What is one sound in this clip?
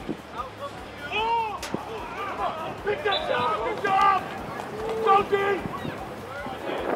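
Players shout across an open field.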